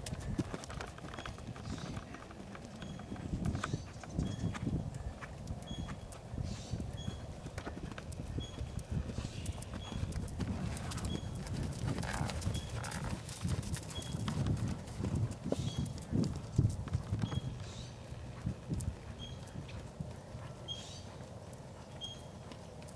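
A horse's hooves thud rhythmically on soft sand as it canters.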